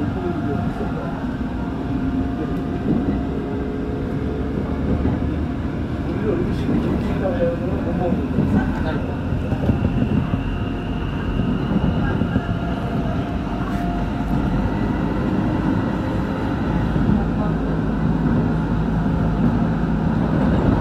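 An electric commuter train rumbles along the rails at speed, heard from inside a carriage.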